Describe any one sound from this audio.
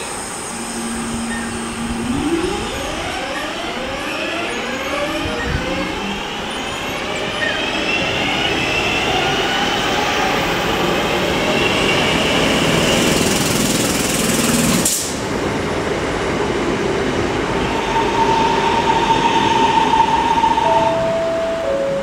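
Train wheels squeal and rumble on the rails.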